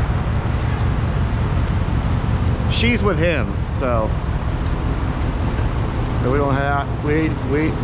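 A pickup truck's engine rumbles nearby.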